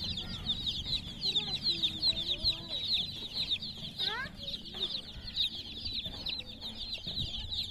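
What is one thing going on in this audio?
Many chicks cheep loudly and continuously.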